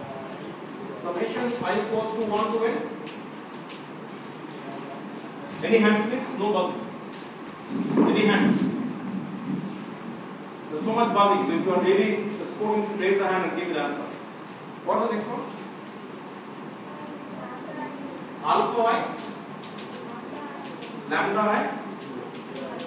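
A man speaks in a raised voice, lecturing in a room with some echo.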